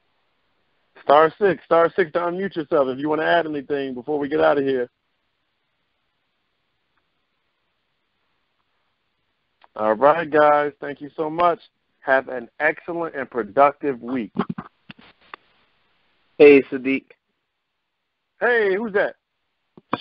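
A man speaks calmly in bursts with pauses, heard through a microphone.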